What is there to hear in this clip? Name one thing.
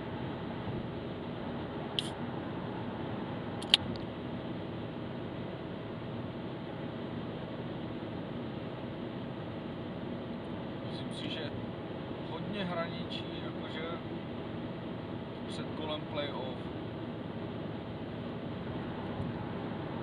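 A car engine hums steadily from inside.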